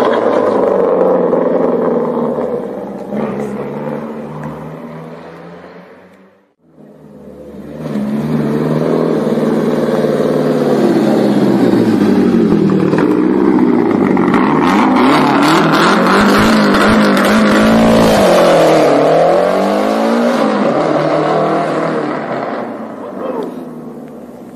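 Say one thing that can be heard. A rally car's engine revs hard and roars, rising and falling in pitch.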